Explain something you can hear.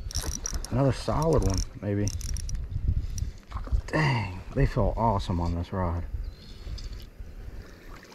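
A fishing reel whirs and clicks as its line is wound in.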